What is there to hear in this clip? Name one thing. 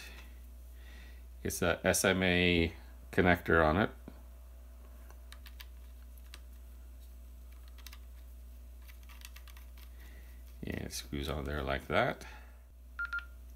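An antenna scrapes and clicks as it is screwed onto a handheld radio.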